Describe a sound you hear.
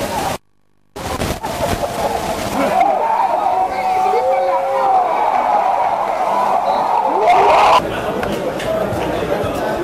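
A crowd of spectators chatters and shouts nearby.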